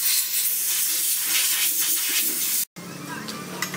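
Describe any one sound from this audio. Water sprays hard from a hose nozzle with a loud hiss.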